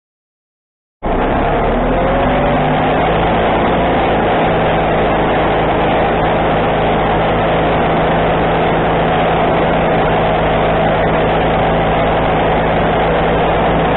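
A sawmill engine starts and runs with a loud, steady roar.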